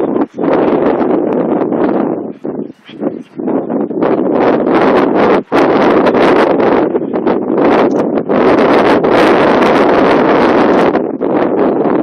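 Strong wind buffets and roars outdoors.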